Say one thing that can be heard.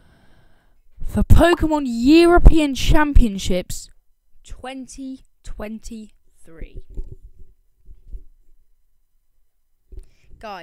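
A boy speaks with animation into a close microphone.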